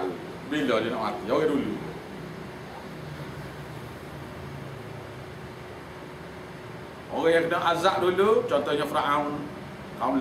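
An elderly man recites aloud in a slow, melodic chant, close by.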